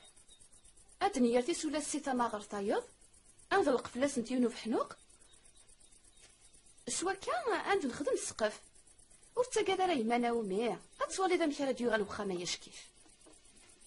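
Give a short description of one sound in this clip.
An elderly woman speaks with emotion, close by.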